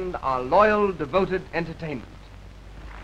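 A man speaks loudly and theatrically.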